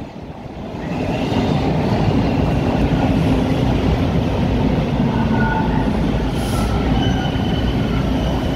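A stopped subway train hums steadily.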